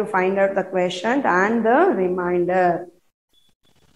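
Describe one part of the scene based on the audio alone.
A woman sings clearly, close to a microphone.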